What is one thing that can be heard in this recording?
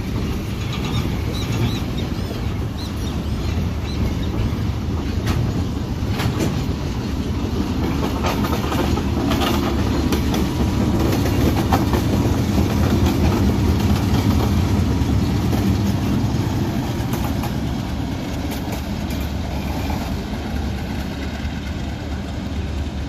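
Train wheels clatter and click over rail joints.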